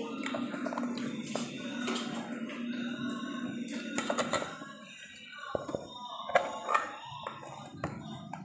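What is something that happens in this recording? Rice scrapes out of a metal pot onto a plate.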